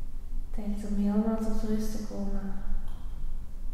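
A woman speaks softly and calmly.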